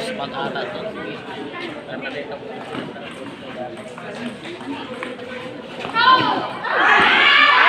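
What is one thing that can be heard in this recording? A ping-pong ball clicks against paddles and the table.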